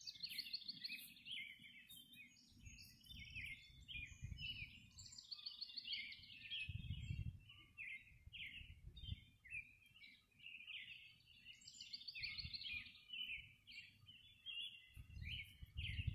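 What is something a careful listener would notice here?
Many birds chirp and twitter busily nearby outdoors.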